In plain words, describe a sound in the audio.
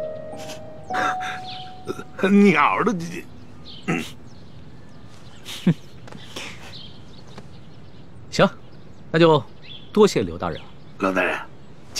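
An elderly man speaks with animation, close by.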